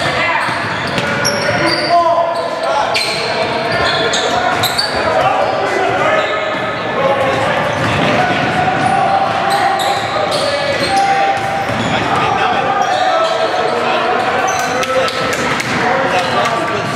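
Sneakers squeak sharply on a hard gym floor.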